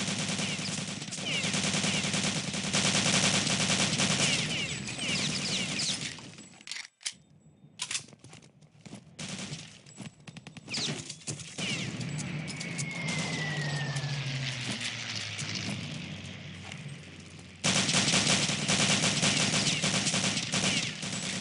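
A submachine gun fires in rapid bursts.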